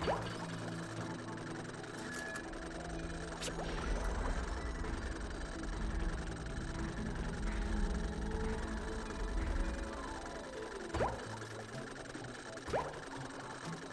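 Short game sound effects zip and chime now and then.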